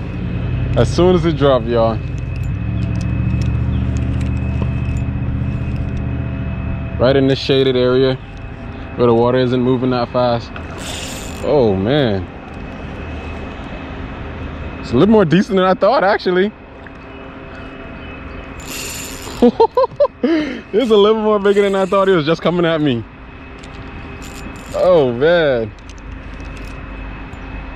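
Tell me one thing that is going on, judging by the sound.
A fishing reel whirs as the line is wound in.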